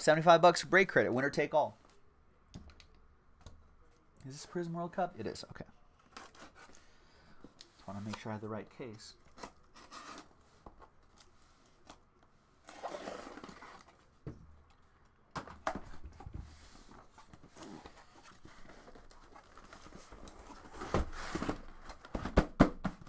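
A cardboard box scrapes and rustles as it is handled.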